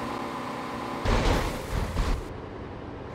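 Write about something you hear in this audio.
A car crashes into the ground with a loud bang.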